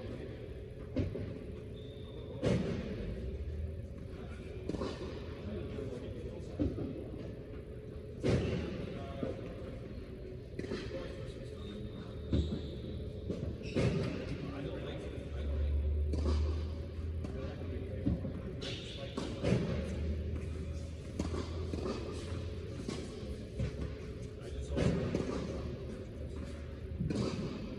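Tennis balls are struck with rackets, echoing in a large hall.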